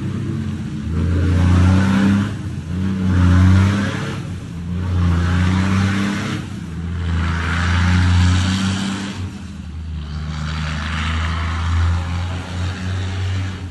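Tyres hiss on a wet road as cars drive past.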